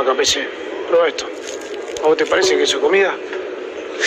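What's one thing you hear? A young man speaks back.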